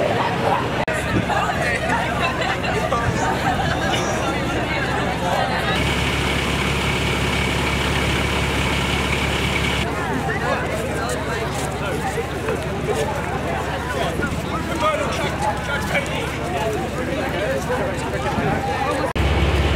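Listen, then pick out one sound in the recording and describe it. A crowd of young people chatters outdoors.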